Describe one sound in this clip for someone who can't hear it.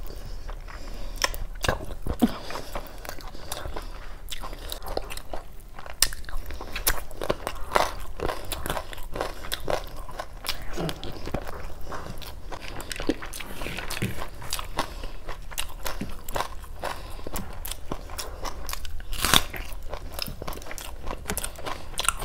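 A young woman chews and smacks her food loudly, close to a microphone.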